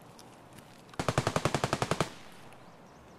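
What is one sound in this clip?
A rifle fires a rapid burst.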